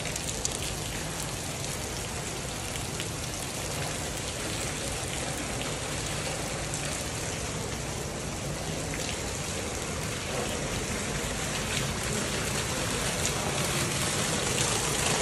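Shallow water splashes steadily under wading footsteps.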